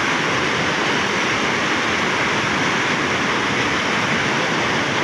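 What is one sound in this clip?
Turbulent floodwater rushes and churns over a stone weir.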